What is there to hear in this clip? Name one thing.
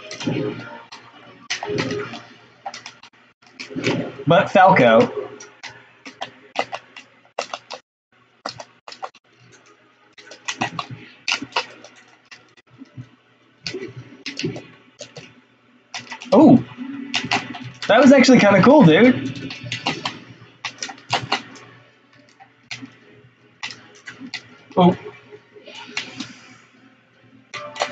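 Video game punches, kicks and blasts crackle in quick bursts.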